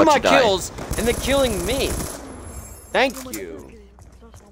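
A young man talks excitedly into a close microphone.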